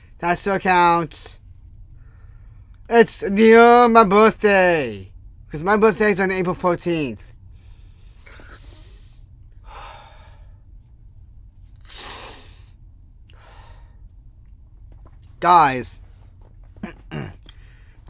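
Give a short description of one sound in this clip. A young man speaks close to a microphone with strong emotion.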